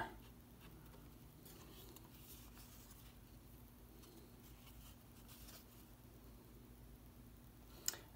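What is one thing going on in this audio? Trading cards rustle softly as they are shuffled by hand.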